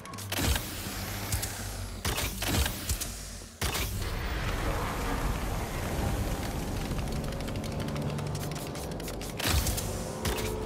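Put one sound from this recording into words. Concrete rubble crashes and clatters down nearby.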